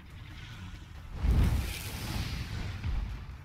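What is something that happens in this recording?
A monster breathes fire with a roaring whoosh.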